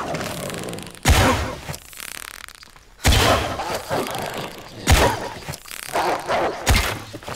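A bowstring twangs sharply as arrows are loosed, again and again.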